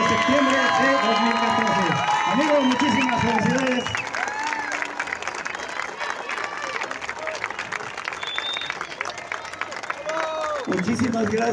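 A crowd chatters and claps.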